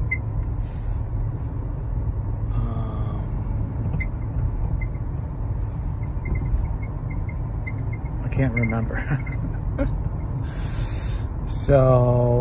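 A car engine and tyres rumble steadily on the road.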